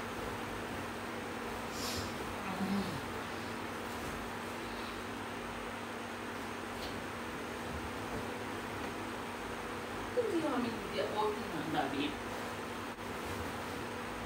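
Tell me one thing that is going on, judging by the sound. Bed sheets rustle as a child moves around on a bed.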